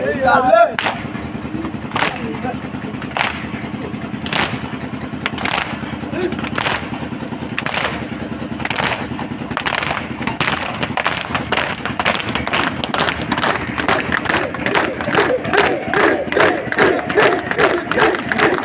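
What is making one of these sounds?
A crowd of young men chant together loudly.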